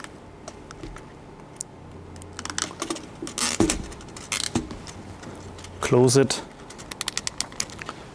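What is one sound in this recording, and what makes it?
Plastic parts click and rattle in a man's hands.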